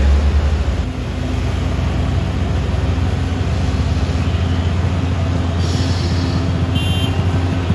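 A heavy truck engine drones steadily.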